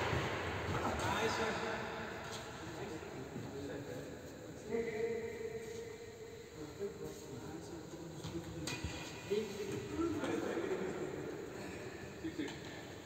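Men talk to each other across the court.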